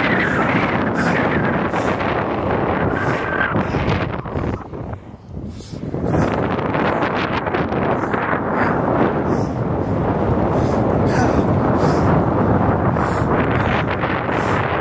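Wind rushes loudly past the microphone outdoors.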